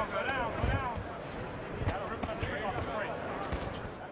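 Gloved punches land with dull thuds.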